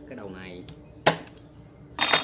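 A cleaver knocks sharply on a wooden chopping block.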